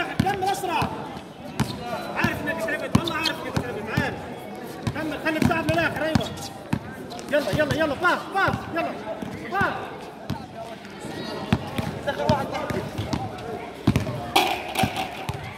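A basketball bounces on a hard floor in quick, steady dribbles.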